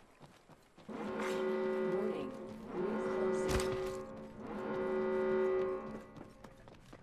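A pitched alarm tone sounds in three bursts.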